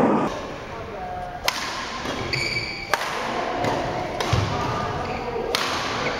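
A shuttlecock is struck with sharp pops of a racket.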